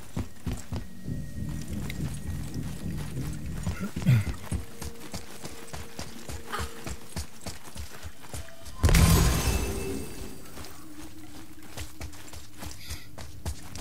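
Heavy footsteps run quickly over hard ground.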